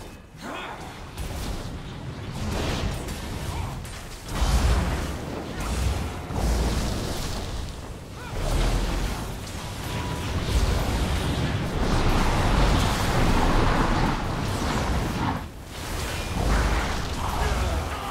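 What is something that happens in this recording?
Spell blasts and magic crackle in a game battle.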